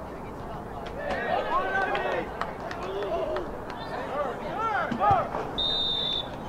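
Young men shout across an open field outdoors.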